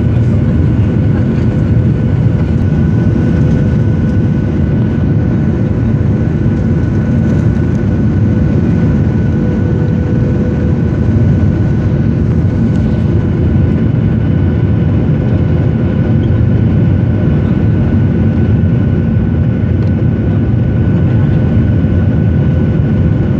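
Jet engines roar steadily with a loud, deep rumble, heard from inside an airliner cabin.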